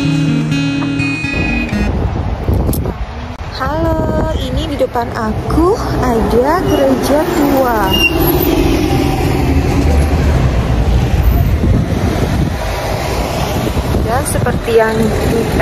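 Traffic rumbles past on a street outdoors.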